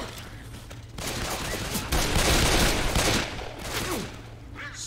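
Pistols fire several quick shots.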